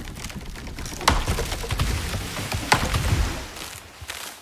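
A tree creaks and crashes to the ground.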